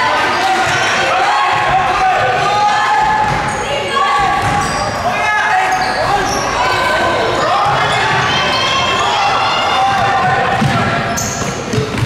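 A basketball thumps on the court floor.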